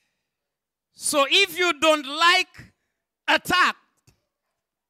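A man preaches with animation through a microphone and loudspeakers.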